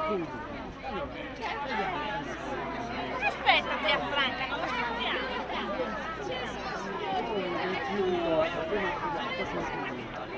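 A crowd of men, women and children chatter all around, close by, outdoors.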